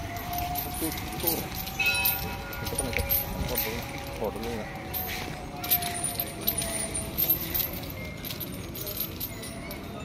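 An elephant walks slowly, its heavy feet thudding softly on dry ground.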